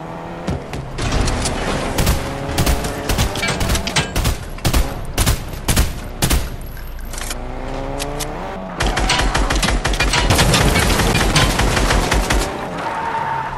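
An assault rifle fires rapid bursts of gunshots.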